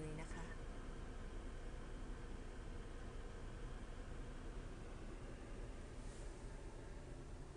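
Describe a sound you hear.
A car engine rumbles steadily, heard from inside the car.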